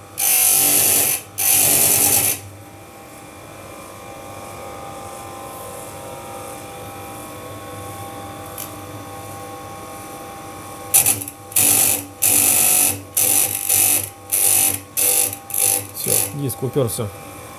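A bench grinder whines as its wheel grinds a saw chain in short bursts.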